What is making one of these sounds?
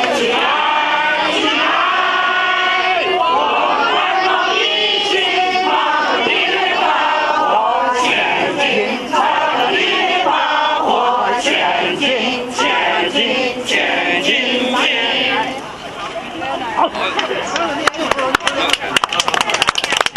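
A crowd of men and women talks and calls out at once outdoors.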